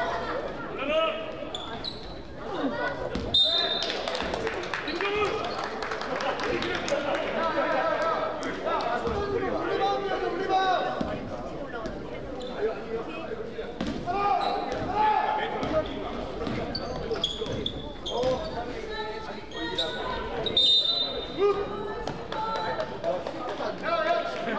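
Young players shout and call out to each other.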